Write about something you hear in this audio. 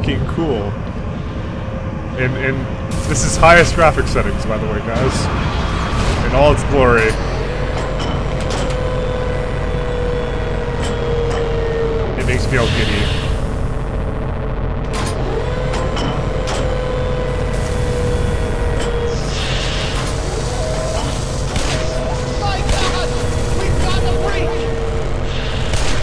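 A large machine hums steadily.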